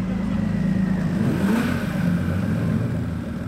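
A car engine revs and passes by close, then fades.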